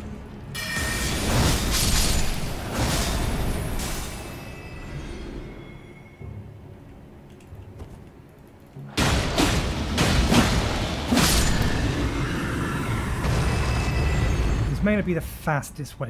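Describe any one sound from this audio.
Blades swing and clash with loud metallic strikes.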